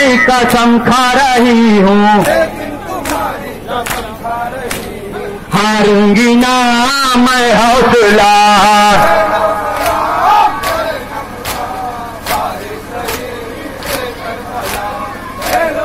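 Men beat their chests in a steady rhythm.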